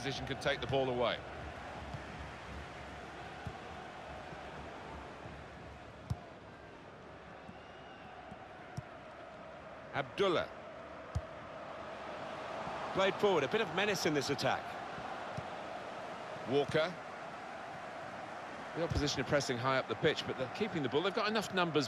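A football is kicked with dull thuds.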